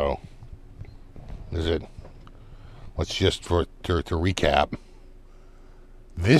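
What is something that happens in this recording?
A middle-aged man speaks casually, close to a microphone.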